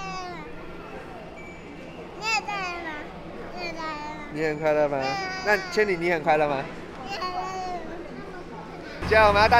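A baby laughs and babbles close by.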